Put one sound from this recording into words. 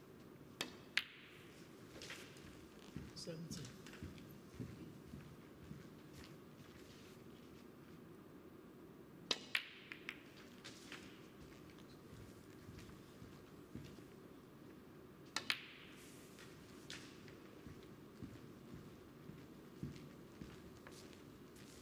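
Snooker balls roll and knock softly against the cushions.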